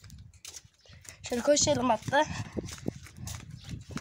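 Footsteps walk over stone paving.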